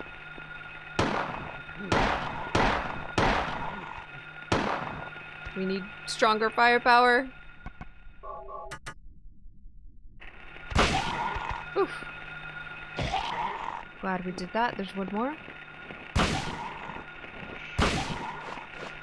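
Heavy blows land with loud, sharp thuds.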